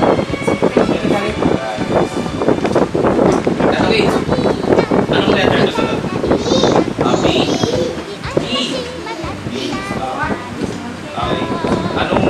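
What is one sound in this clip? A group of young children chant loudly together in an echoing room.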